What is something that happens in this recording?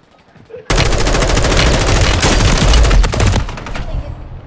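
Automatic gunfire rattles rapidly and loudly.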